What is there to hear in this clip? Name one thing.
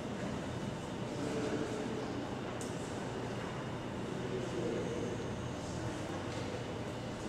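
A man speaks calmly, echoing in a large hall.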